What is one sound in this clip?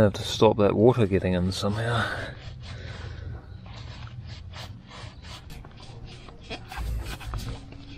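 A cloth rubs and rustles against metal.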